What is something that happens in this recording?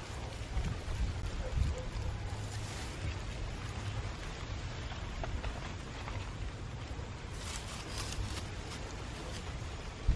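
Grass and leaves rustle as a hand pushes through them.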